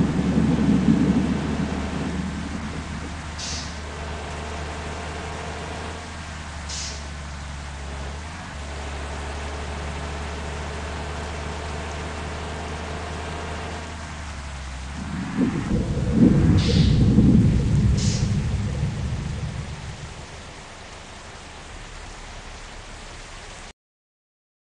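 A bus engine hums steadily, dropping as the bus slows.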